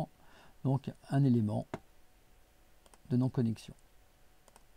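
A middle-aged man speaks calmly into a microphone, explaining.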